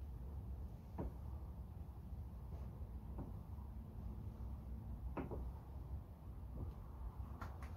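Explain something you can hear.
Wooden beams knock and creak at a slow, steady pace.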